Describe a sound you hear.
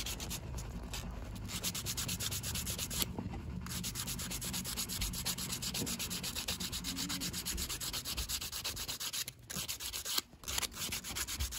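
A strip of sandpaper rasps rapidly back and forth against a small piece.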